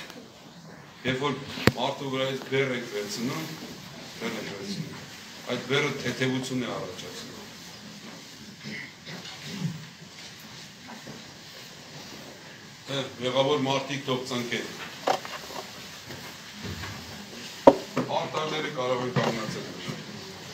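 An elderly man chants a prayer in a slow, rising and falling voice, echoing in a stone hall.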